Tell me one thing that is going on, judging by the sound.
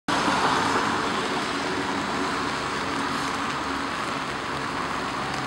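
Rain patters steadily on umbrellas outdoors.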